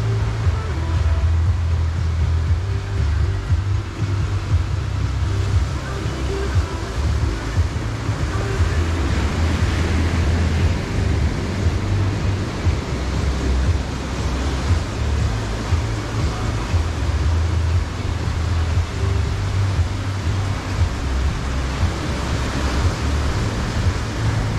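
Waves wash up onto a beach and roll back.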